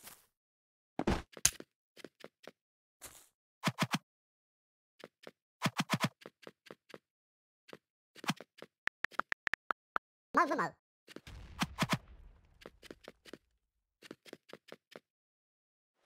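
Blocks are placed in quick short clicks and thuds.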